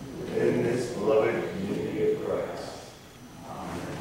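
A group of people sing together in a large echoing hall.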